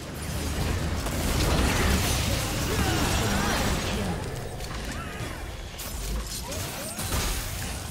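Magic spells crackle and burst during a fast video game fight.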